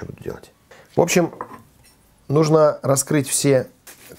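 A knife slices through a baked potato onto a wooden board.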